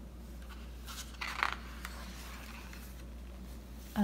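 A stiff paper page turns with a soft rustle.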